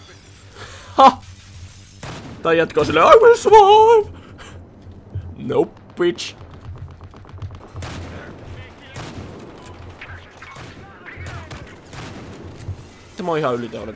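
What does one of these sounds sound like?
A shotgun fires in loud single blasts.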